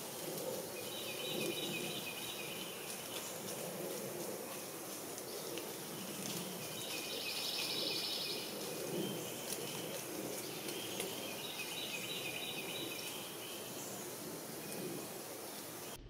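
Leaves rustle softly in a light breeze.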